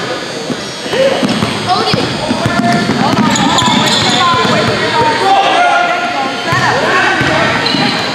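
A basketball is dribbled on a hardwood court.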